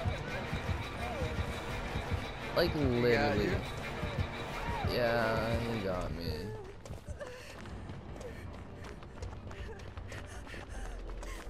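Quick footsteps run through dry leaves and undergrowth.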